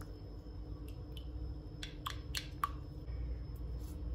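A pastry brush clinks against a glass while whisking egg.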